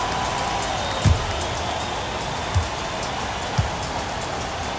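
A basketball bounces a few times on a wooden floor.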